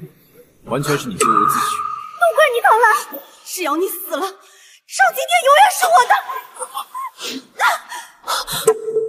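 A young woman shouts angrily.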